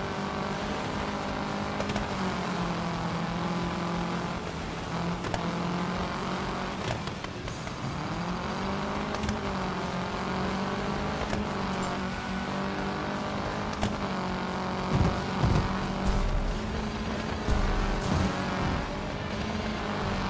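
Tyres crunch and skid over dirt and sand.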